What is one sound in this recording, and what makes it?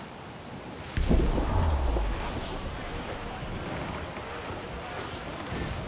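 A cannon booms.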